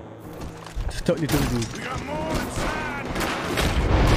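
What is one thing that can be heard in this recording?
A man shouts in a gruff voice.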